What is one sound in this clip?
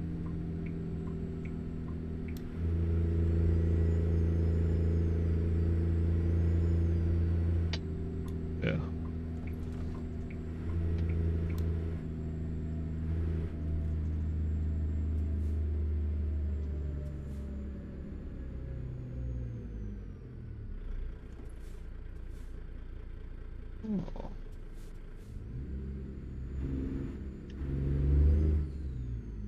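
A truck's diesel engine rumbles steadily, then drops in pitch as it slows.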